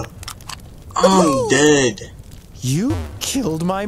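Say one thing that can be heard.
A young man exclaims and laughs excitedly into a nearby microphone.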